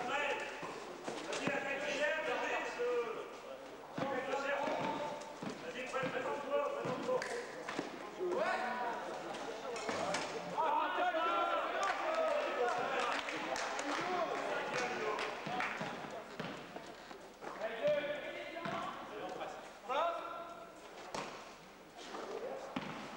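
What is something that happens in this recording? Young men shout to each other across an echoing sports hall.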